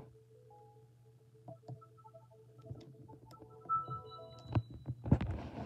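A button clicks on a handheld game console.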